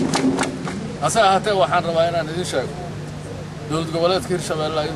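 A group of men chants loudly in unison, outdoors.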